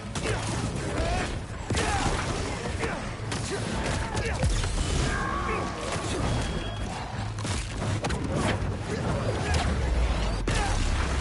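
Energy blasts crackle and boom in a fight.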